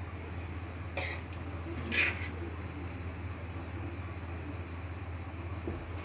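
A spoon scrapes and clinks against a frying pan.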